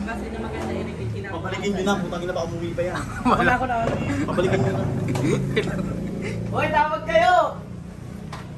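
A young woman talks and laughs nearby.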